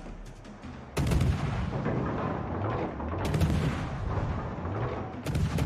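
Anti-aircraft guns fire in rapid, loud bursts.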